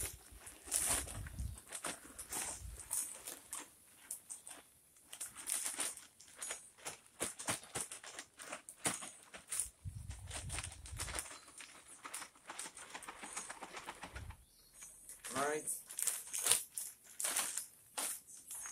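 Potting soil pours and patters out of a plastic bag.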